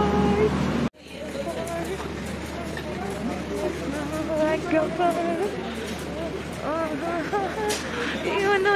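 A crowd chatters.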